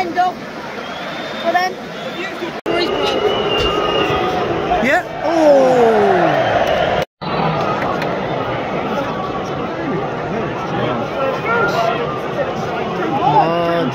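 A large stadium crowd roars and chants loudly outdoors.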